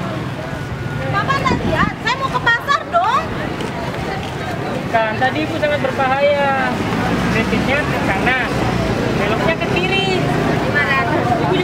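A woman speaks loudly with animation nearby.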